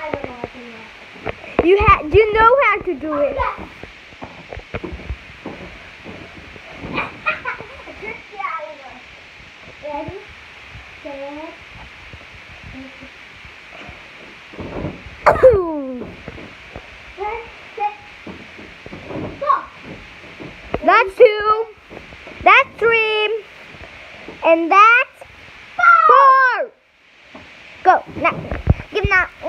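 A mattress thumps as a child jumps and lands on it.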